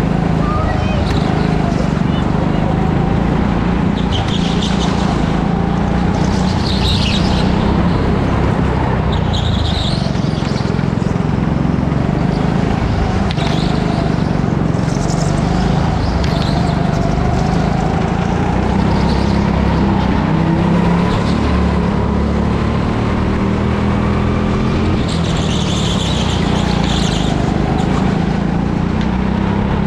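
A go-kart engine drones loudly and steadily, rising and falling in pitch.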